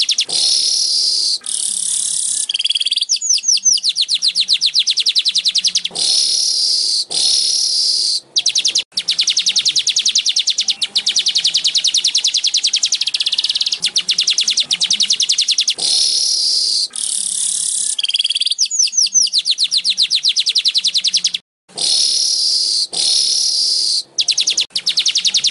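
A small bird sings a loud, rapid, buzzing and chattering song close by.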